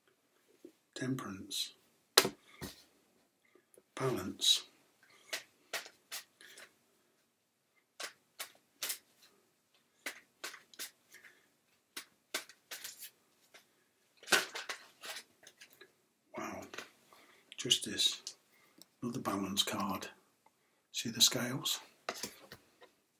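A middle-aged man speaks calmly and close, in short bursts with pauses.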